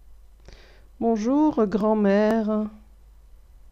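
A young woman speaks clearly and slowly into a close microphone.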